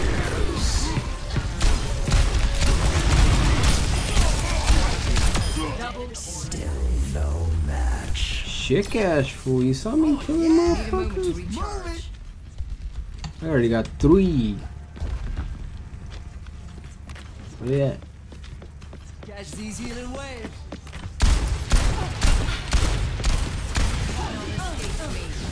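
Shotguns fire in rapid heavy blasts.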